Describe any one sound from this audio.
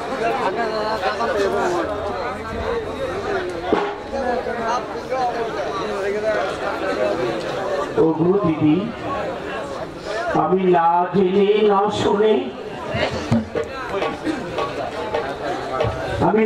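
A woman sings through a microphone over loudspeakers.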